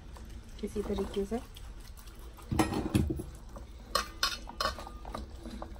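Hands rub seasoning into raw meat with soft, wet squelches.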